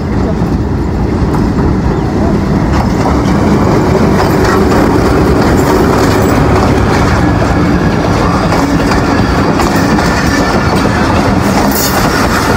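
Train wheels clatter and squeal steadily on the rails.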